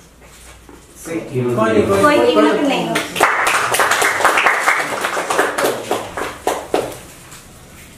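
A young woman speaks expressively into a microphone, close by.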